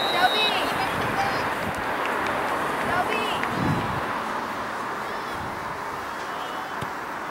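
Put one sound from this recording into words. Wind blows steadily across an open outdoor space.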